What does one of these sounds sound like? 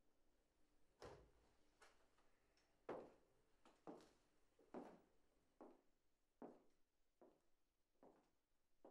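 Footsteps thud slowly and heavily across a hard floor.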